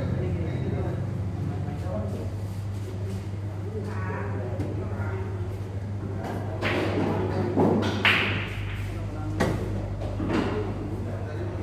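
Men talk in the background.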